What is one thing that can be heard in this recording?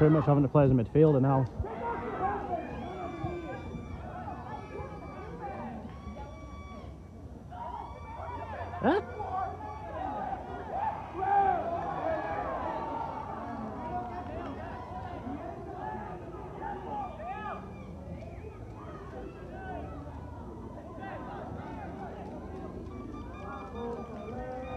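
People chatter nearby in a small crowd.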